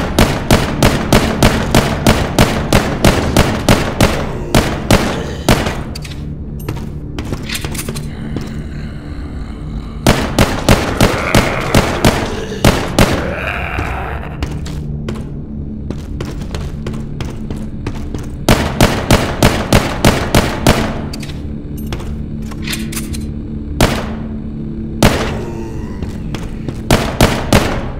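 Rapid pistol shots ring out in a video game.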